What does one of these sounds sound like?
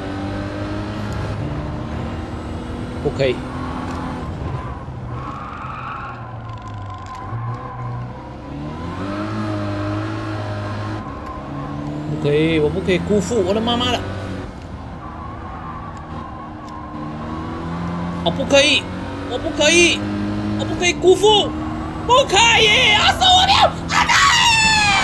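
A racing car engine revs up and down with quick gear changes.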